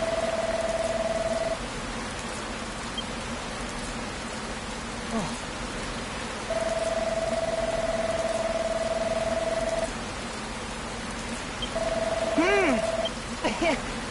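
A steady electronic tone sounds as game dialogue text prints out.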